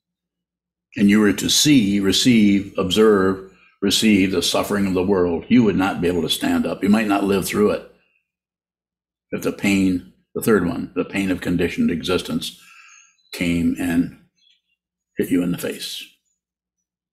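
An elderly man speaks calmly into a microphone over an online call, in short phrases with pauses.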